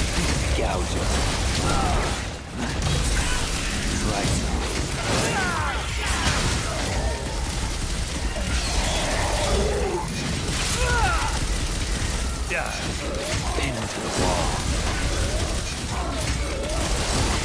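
Monstrous creatures shriek and screech.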